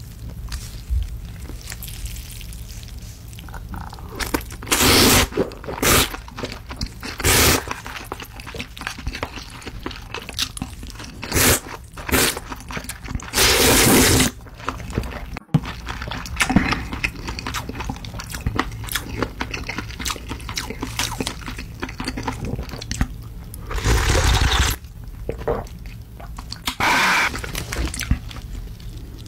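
A man chews wetly close to a microphone.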